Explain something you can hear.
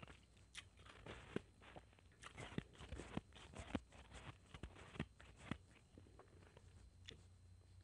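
A spoon scrapes and clinks against a plastic bowl.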